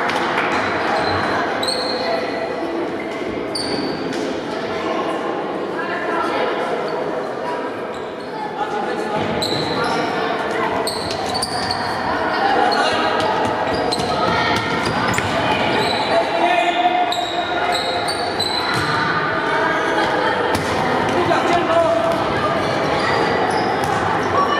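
Children shout to each other across the echoing hall.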